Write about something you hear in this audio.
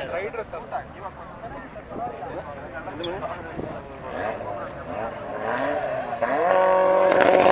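Car engines rev loudly at the starting line.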